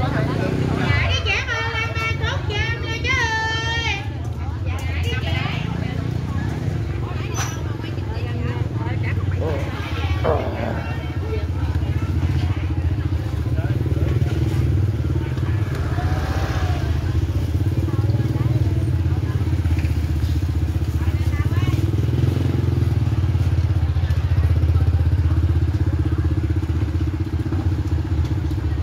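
Women and men chatter in the background.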